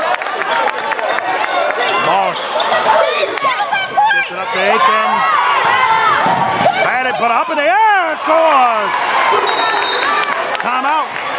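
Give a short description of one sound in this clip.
A basketball bounces on the hard floor.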